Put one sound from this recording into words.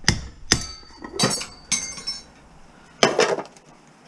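Metal pans clatter as they are moved.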